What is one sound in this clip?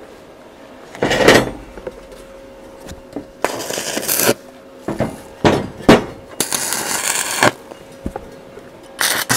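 An arc welder crackles and hisses in short bursts.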